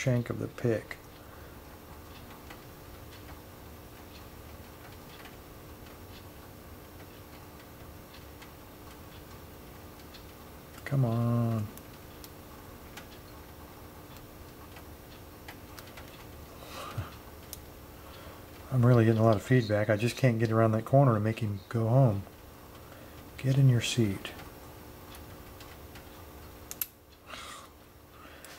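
Metal lock picks click and scrape faintly inside a lock.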